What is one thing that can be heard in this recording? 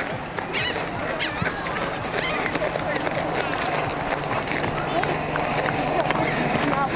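Young children shout and call out across an open field outdoors.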